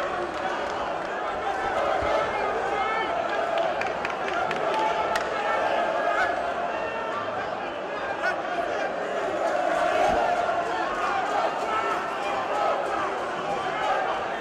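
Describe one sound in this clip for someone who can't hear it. Boxing gloves thud on bodies now and then.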